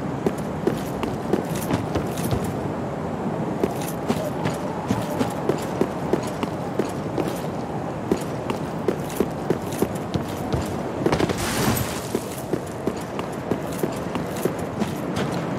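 Heavy armoured footsteps run quickly over the ground.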